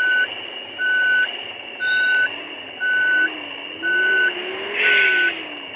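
A warning chime on a bus beeps steadily about once a second.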